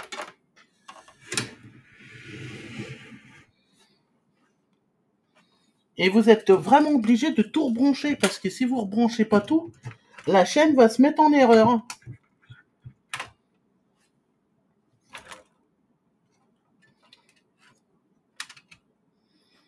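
Plastic parts click and knock as hands handle them.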